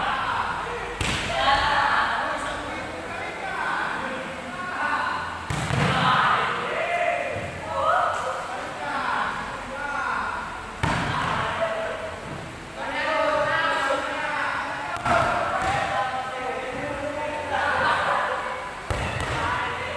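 A volleyball is struck hard by hand in a large echoing hall.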